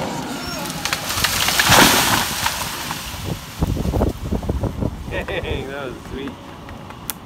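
A tall tree crashes down, its branches snapping and thrashing into the brush.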